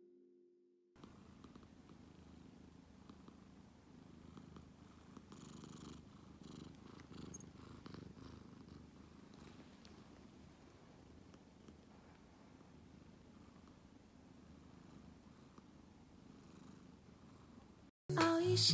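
A cat rolls and rubs against a soft cushion with a faint rustle.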